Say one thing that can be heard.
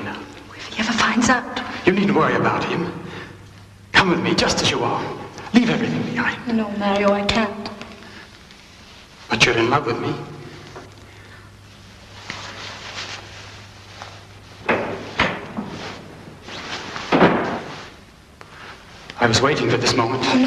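A man speaks softly and closely.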